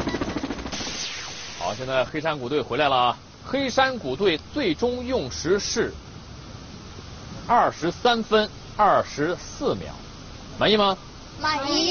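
A man speaks with animation to a group.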